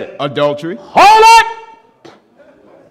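A man preaches loudly through a microphone, his voice rising to a shout.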